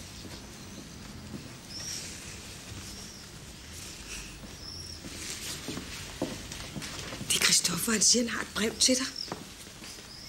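A young girl speaks softly and close by.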